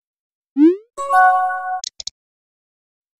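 A short notification chime plays as a new message arrives.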